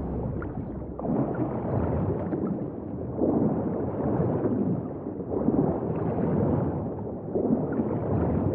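Muffled swimming strokes swirl underwater in bursts.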